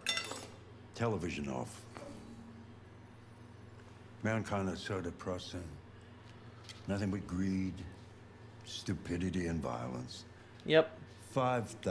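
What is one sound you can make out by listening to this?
An elderly man speaks slowly and gloomily, close by.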